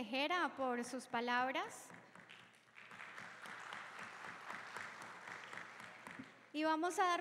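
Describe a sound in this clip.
People clap and applaud in a large echoing hall.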